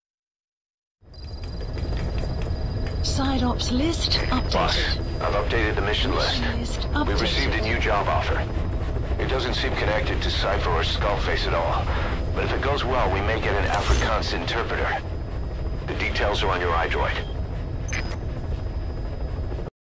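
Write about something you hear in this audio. A helicopter engine drones steadily from inside the cabin.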